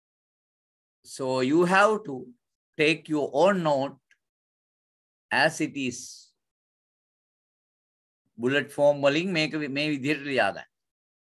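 A man speaks calmly through a microphone on an online call, in short bursts with pauses.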